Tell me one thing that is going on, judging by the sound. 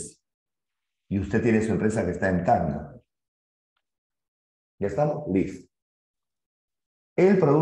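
A middle-aged man speaks clearly into a close microphone, explaining in bursts.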